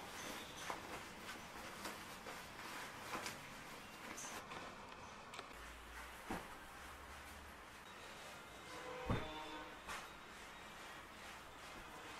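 Cloth rustles as it is handled and folded.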